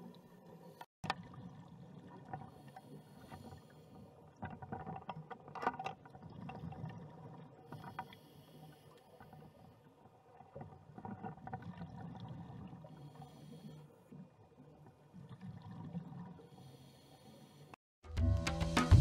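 Scuba divers breathe out through regulators, with bubbles rumbling and gurgling underwater in bursts.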